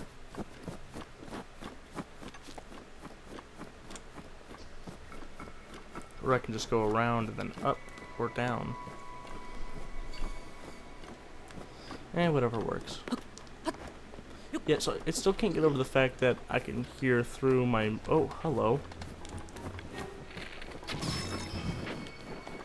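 Footsteps crunch in snow.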